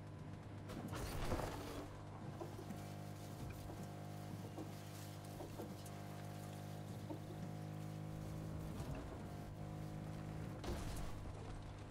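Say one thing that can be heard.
A vehicle's suspension thumps over bumps.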